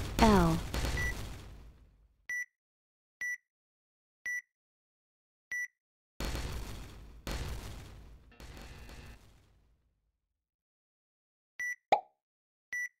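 A short electronic beep sounds at a steady pace, counting down.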